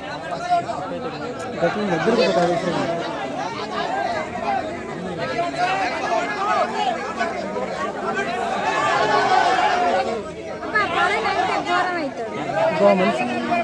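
A crowd of men talks and calls out over one another outdoors.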